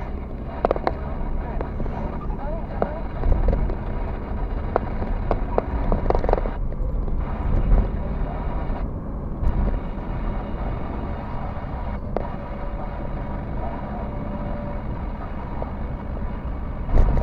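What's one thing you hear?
A car engine hums steadily with road noise from inside the car as it drives.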